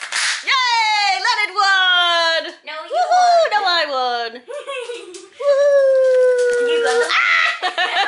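A dog whines and howls in rising and falling tones.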